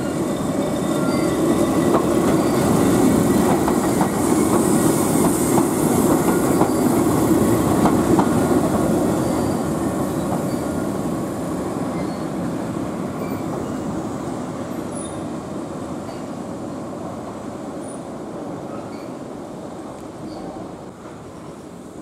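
A tram rumbles past close by on rails, then fades into the distance.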